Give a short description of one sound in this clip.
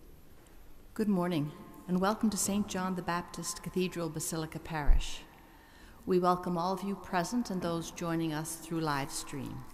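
An elderly woman reads aloud through a microphone in a large echoing hall.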